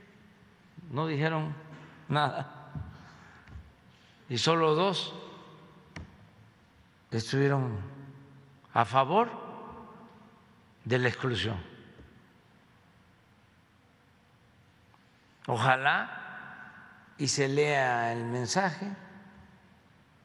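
An elderly man speaks slowly and calmly into a microphone, in short phrases with long pauses.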